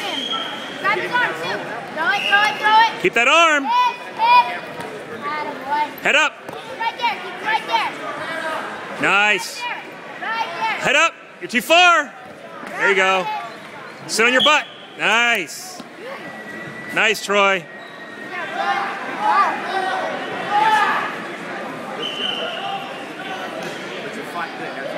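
Young men and women shout and cheer loudly from close by in a large echoing hall.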